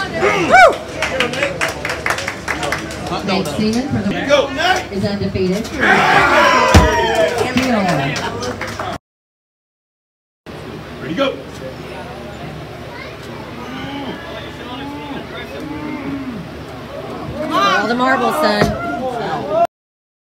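A crowd of men and women shouts and cheers loudly nearby.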